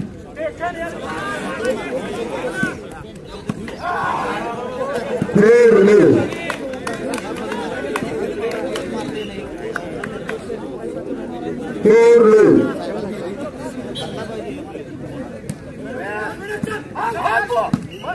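A crowd of men shouts and chatters outdoors.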